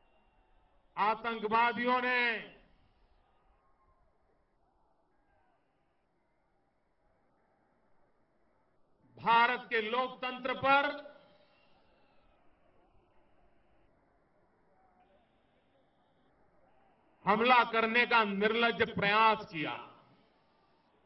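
An elderly man speaks forcefully into a microphone, his voice carrying over loudspeakers outdoors.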